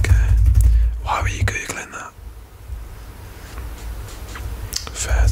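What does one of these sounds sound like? A young man whispers close to a microphone.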